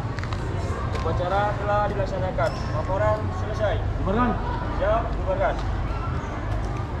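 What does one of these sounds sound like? A man calls out in the distance through a loudspeaker.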